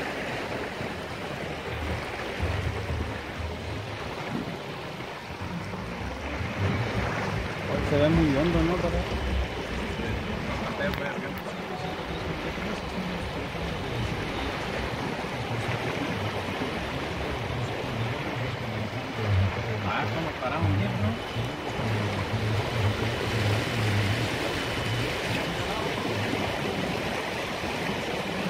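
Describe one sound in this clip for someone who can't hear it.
Tyres splash and swish through deep floodwater.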